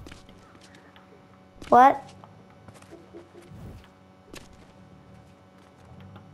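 Footsteps tap lightly on a hard floor.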